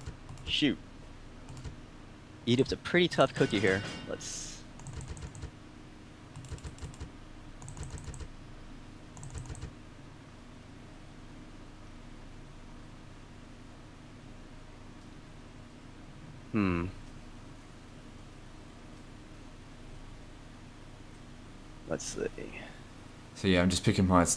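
Short electronic click sounds play as menu items are picked.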